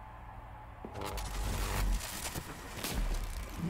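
A loud whooshing burst of spinning blades erupts.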